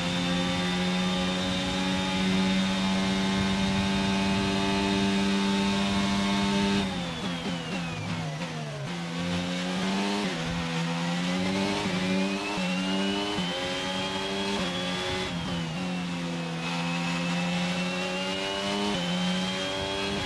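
A racing car engine screams at high revs, drops sharply while braking, then climbs again through quick gear shifts.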